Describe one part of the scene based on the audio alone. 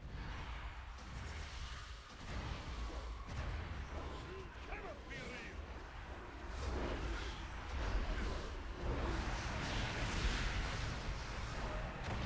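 Spell effects and weapon strikes clash and crackle in a fight.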